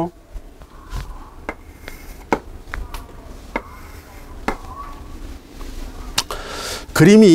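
Chalk taps against a blackboard.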